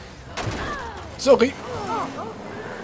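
A car crashes into objects with loud knocks.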